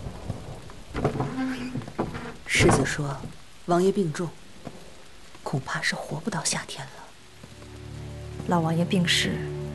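A young woman speaks quietly and calmly nearby.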